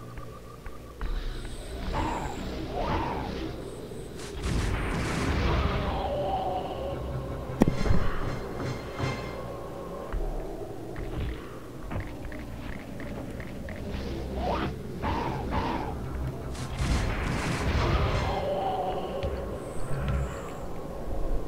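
A blade swooshes and crackles with energy as a sword swings.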